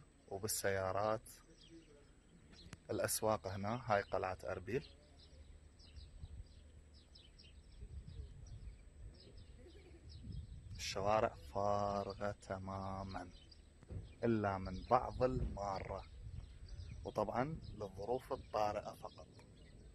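A man talks up close outdoors, in short bursts.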